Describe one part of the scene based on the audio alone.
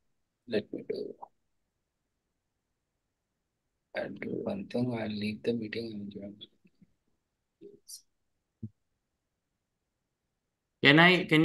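A man speaks calmly through an online call, in short bursts with pauses.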